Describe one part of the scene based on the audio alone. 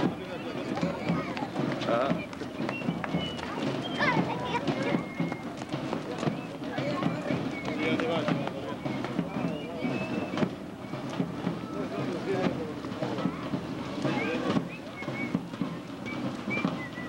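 Many footsteps patter on a street.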